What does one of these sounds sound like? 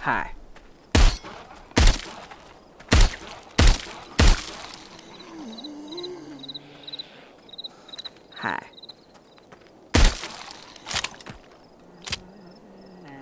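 Gunshots fire in loud, sharp bursts.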